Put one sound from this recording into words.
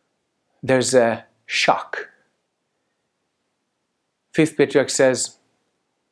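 A man speaks calmly and closely into a microphone, with pauses.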